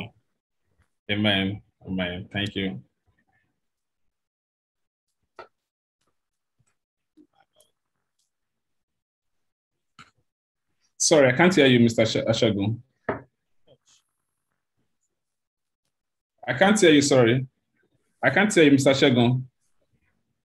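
A young man talks calmly over an online call, in short bursts with pauses.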